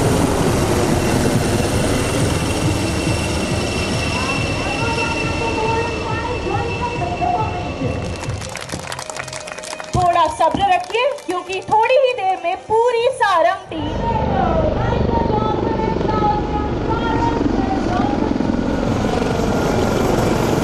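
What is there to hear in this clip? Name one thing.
A helicopter's rotor roars overhead.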